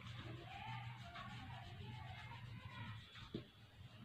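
An eraser rubs on paper.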